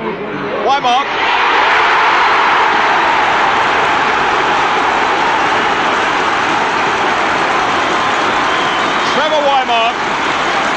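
A large stadium crowd roars and cheers loudly after a goal.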